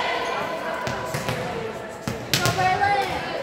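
A volleyball thuds as it is struck.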